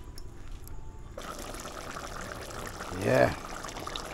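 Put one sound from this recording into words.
A metal pot lid clanks as it is lifted.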